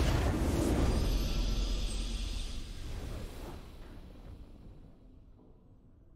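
A triumphant victory fanfare swells and slowly fades.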